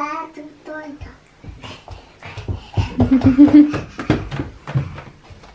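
A baby crawls across the floor with soft thumps of hands and knees.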